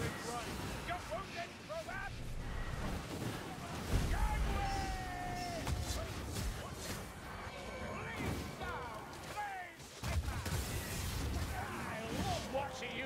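Fire spells whoosh and crackle.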